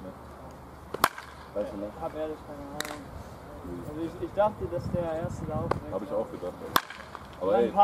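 A baseball bat cracks sharply against a ball.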